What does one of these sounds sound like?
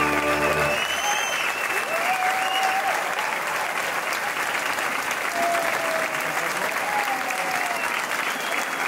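Audience members whistle and cheer.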